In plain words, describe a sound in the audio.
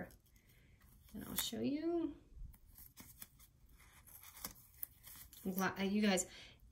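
Stiff paper rustles and creases as it is folded by hand.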